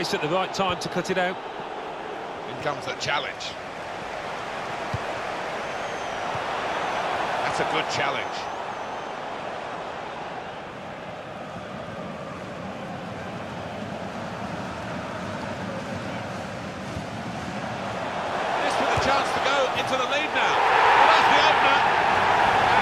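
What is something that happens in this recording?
A stadium crowd roars steadily, swelling loudly near the end.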